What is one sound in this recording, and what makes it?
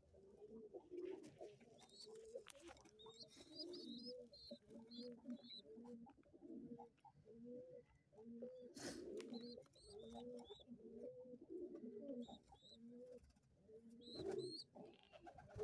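Pigeon chicks cheep in thin, high squeaks.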